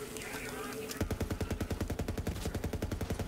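A rapid-fire gun fires in a fast, steady burst.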